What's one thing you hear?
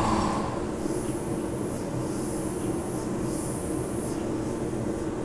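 An airbrush hisses in short bursts of spray.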